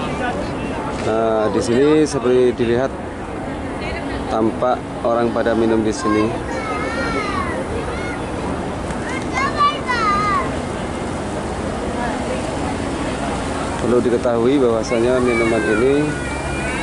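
Men and women talk nearby in a busy open space.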